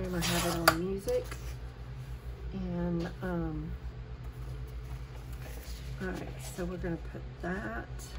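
Paper rustles as sheets are moved and laid down.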